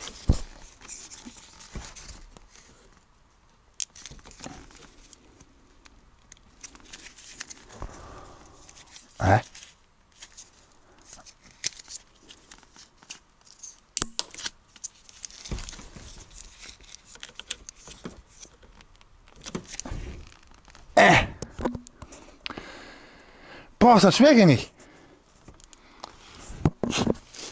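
Hands handle plastic parts with small clicks and rustles.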